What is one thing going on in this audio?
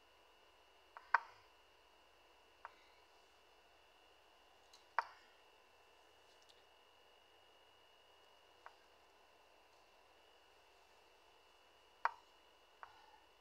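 A computer chess game plays short clicks as pieces are moved.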